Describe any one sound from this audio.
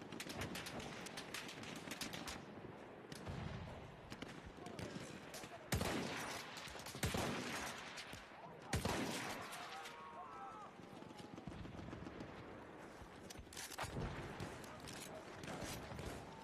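Gunfire and explosions crackle in the distance.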